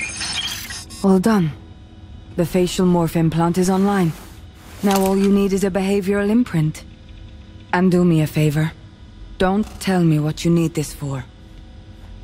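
A woman speaks calmly, close and clear.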